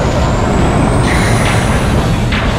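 Metal clashes loudly in a fight.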